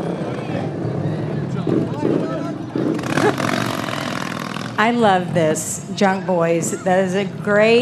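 Motorcycle engines rumble as they roll slowly past.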